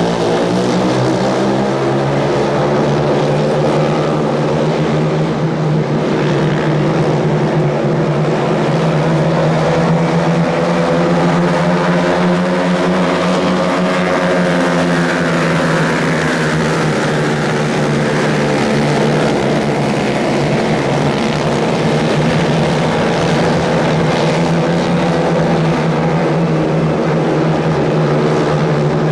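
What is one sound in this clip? Many racing car engines roar loudly and steadily, rising and falling in pitch as the cars race around the track.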